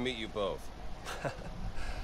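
A man laughs briefly.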